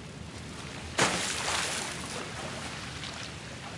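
Someone splashes into water.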